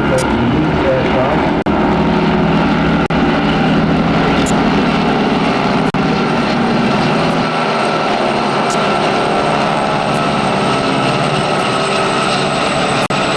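Aircraft engines drone steadily overhead.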